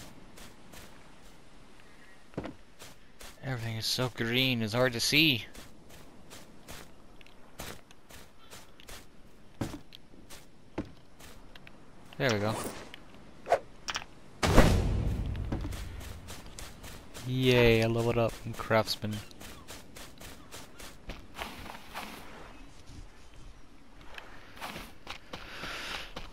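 Footsteps rustle through grass and leaves.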